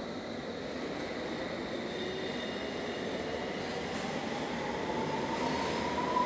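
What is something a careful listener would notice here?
A train rumbles along a platform.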